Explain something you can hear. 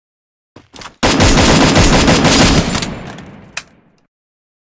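A sniper rifle fires a loud, echoing shot.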